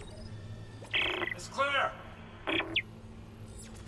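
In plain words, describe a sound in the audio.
Electronic interface tones beep and chirp a few times.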